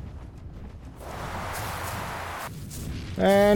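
Big wings beat with a rushing whoosh.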